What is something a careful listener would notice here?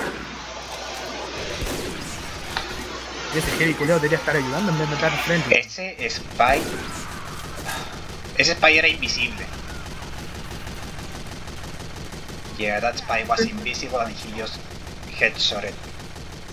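A rifle fires a sharp shot.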